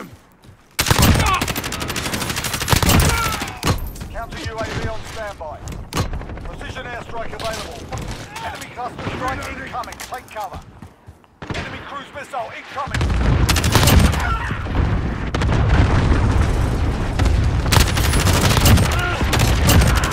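Gunshots fire in rapid bursts, close and loud.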